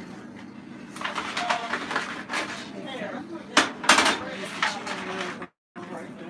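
Foil trays crinkle as they are handled.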